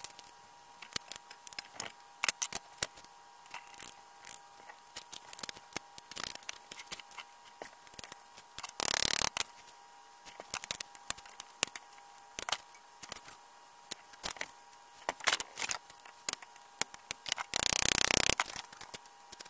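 Pliers scrape and click against a metal bolt.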